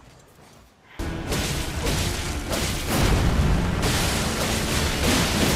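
Heavy battle sounds crash and rumble loudly.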